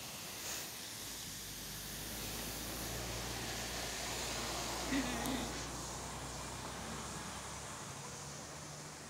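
A double-decker city bus rumbles past.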